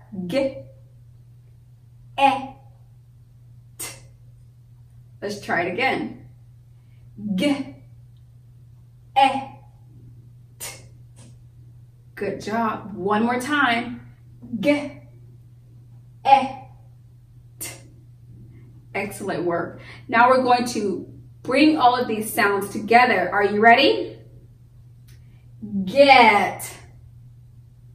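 A young woman speaks clearly and slowly, close by, in short bursts with pauses.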